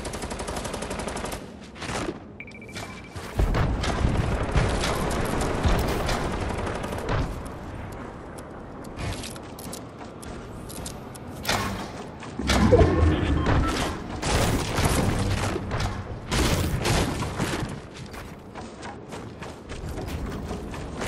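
Building pieces clatter and thud into place in quick bursts.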